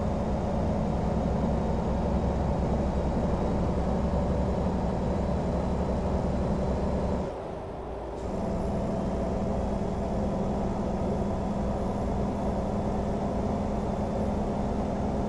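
A truck engine drones steadily, dropping away briefly before picking up again.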